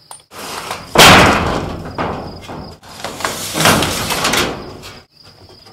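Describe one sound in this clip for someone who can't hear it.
A sheet of metal roofing scrapes and rattles as it slides across another.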